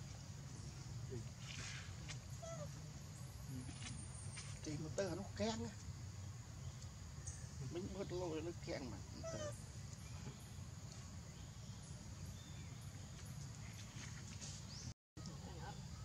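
A baby monkey suckles softly.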